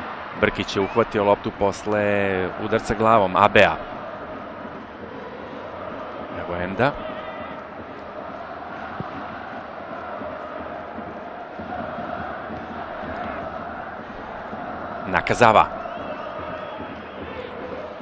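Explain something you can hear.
A large stadium crowd chants and roars steadily outdoors.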